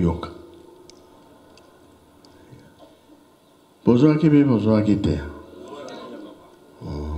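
A man speaks loudly through a loudspeaker outdoors.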